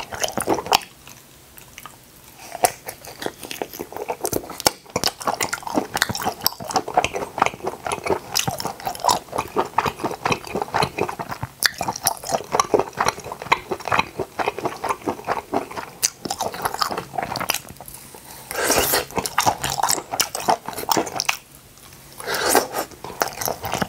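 A man bites into food with a juicy squelch.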